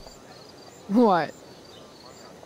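A young woman speaks flatly, close by.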